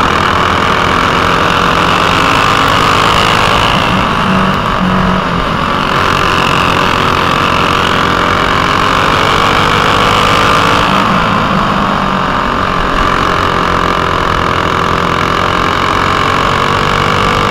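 A kart engine screams loudly close by, rising and falling in pitch as it speeds up and slows.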